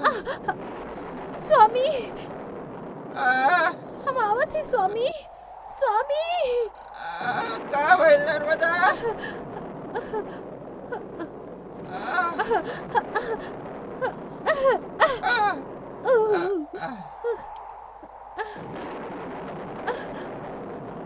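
A woman sings a mournful song with strong emotion.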